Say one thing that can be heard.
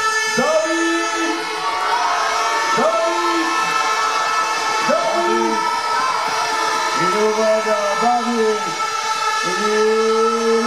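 A large crowd cheers noisily in an echoing tent.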